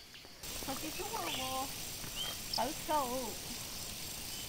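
A young woman calls out nearby.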